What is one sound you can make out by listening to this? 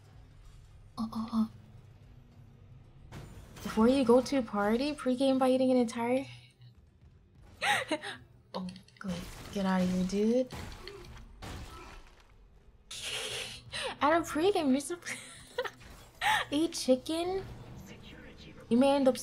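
A young woman talks with animation into a microphone, close up.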